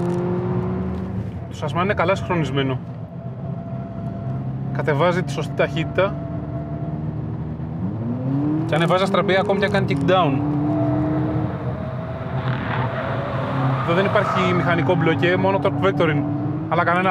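A car engine roars as it is driven hard.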